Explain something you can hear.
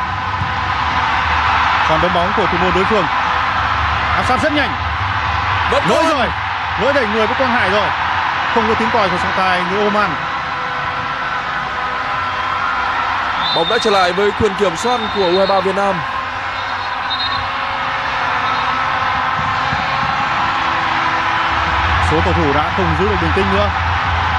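A large crowd murmurs and cheers steadily outdoors.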